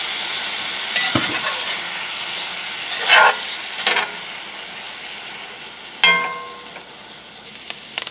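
A metal spatula scrapes and knocks against a cast iron pan.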